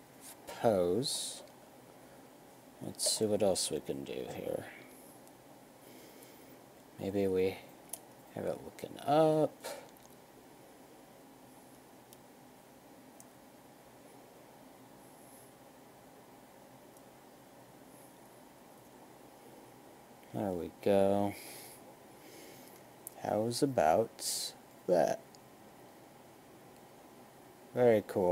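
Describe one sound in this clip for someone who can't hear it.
A young man talks casually into a close headset microphone, in short bursts with pauses.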